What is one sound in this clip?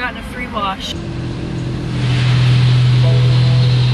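Water sprays and drums hard against a car windshield.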